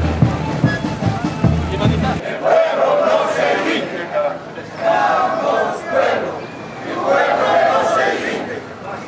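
A crowd of marchers chatters outdoors.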